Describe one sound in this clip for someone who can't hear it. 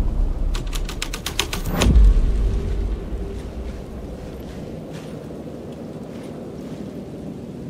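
Footsteps walk slowly over a hard floor.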